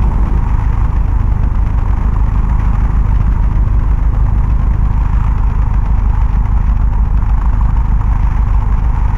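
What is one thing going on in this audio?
A propeller aircraft engine drones steadily with a low rumble.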